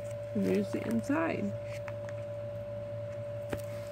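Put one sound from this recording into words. Stiff plastic album pages crinkle as they are turned.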